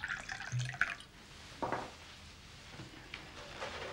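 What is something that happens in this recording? Wine pours into a glass.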